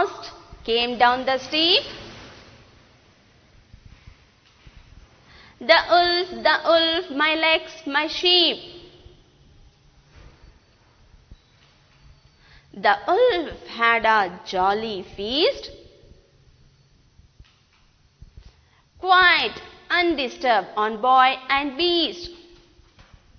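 A woman recites lines of verse slowly and clearly into a close microphone, with pauses between lines.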